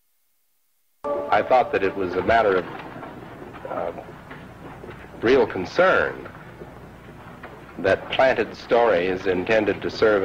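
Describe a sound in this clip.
A middle-aged man speaks calmly and earnestly into a microphone.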